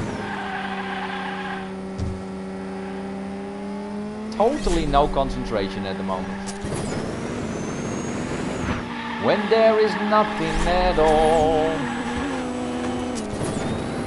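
A toy racing car's engine whines steadily.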